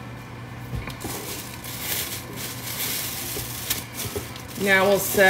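Plastic wrap crinkles and rustles close by.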